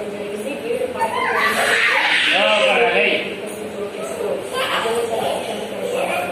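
A toddler squeals and shouts with excitement close by.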